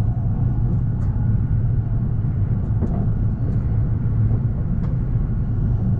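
Wheels click now and then over rail joints.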